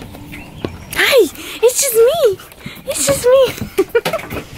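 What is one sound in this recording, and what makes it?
A dog whines in short high rising and falling cries.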